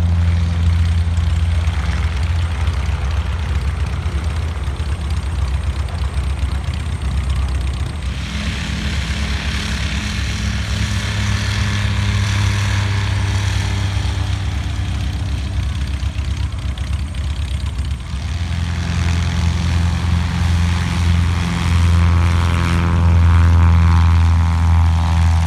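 A small propeller plane's engine drones steadily nearby.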